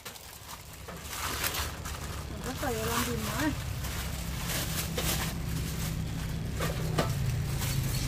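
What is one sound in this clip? Water splashes as plates are washed in a basin.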